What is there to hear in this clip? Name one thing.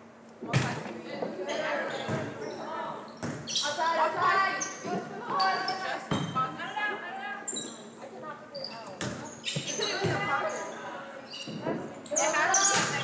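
Young women on the sidelines shout and cheer with excitement.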